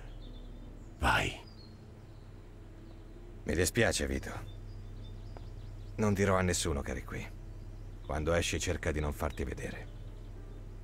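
An elderly man speaks calmly in a low voice.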